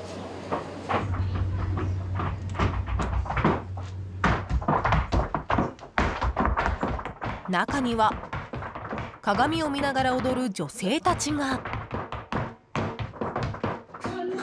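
Heels stamp rhythmically on a wooden floor.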